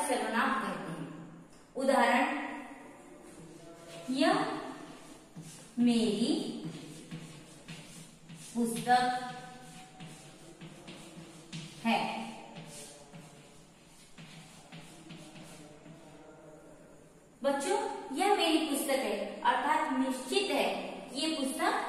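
A young woman speaks clearly and steadily, like a teacher explaining.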